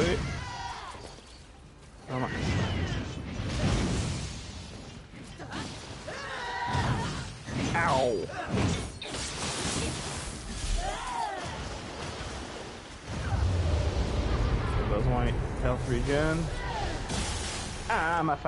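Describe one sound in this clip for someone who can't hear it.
Swords clash and slash in a fast fight.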